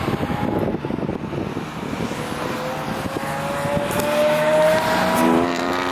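An aircraft engine drones overhead, slowly rising in pitch.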